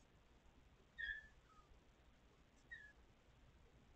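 A kitten meows briefly.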